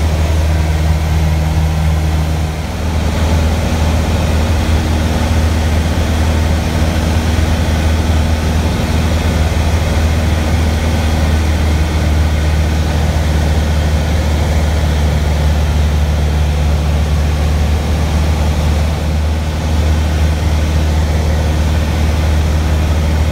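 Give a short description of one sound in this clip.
A small plane's propeller engine drones loudly and steadily inside the cabin.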